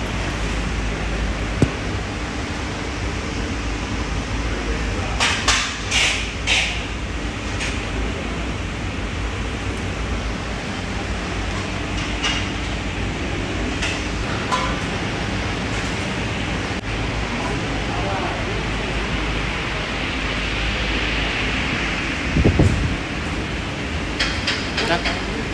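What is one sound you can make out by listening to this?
A steady machine hum drones throughout.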